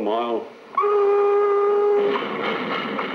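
A steam locomotive whistle blows a steady note.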